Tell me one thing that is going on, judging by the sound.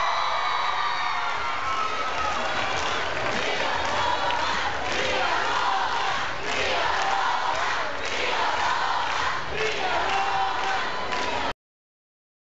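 A large crowd sings along and cheers loudly outdoors.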